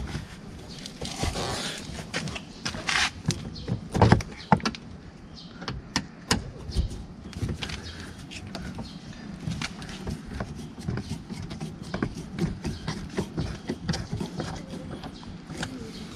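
A screwdriver clicks and scrapes against plastic trim.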